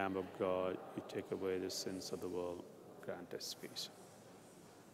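A man chants slowly through a microphone in an echoing hall.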